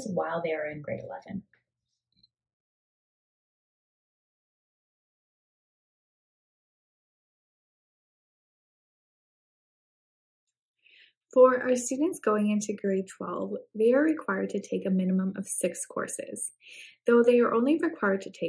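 A young woman talks with animation into a microphone, close by.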